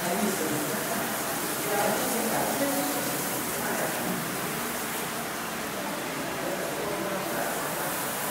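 Several adults chat at a distance, their voices echoing in a large hall.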